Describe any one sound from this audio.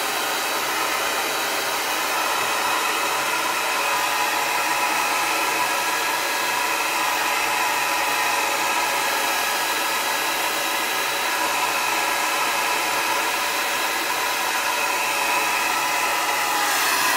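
A hair dryer blows with a steady, loud whir close by.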